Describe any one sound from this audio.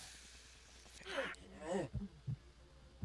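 A man grunts and murmurs gruffly close by.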